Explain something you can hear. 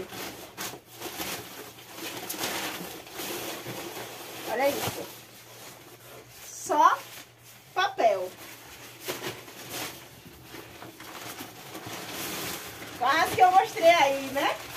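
Paper crinkles and rustles as it is pulled from a box.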